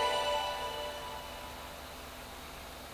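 A computer plays a short startup chime through small speakers, then the chime fades away.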